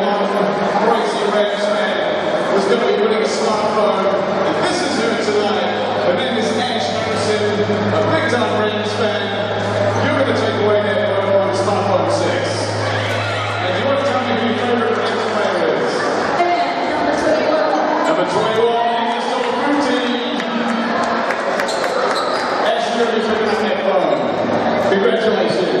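A large crowd murmurs and chatters in an echoing hall.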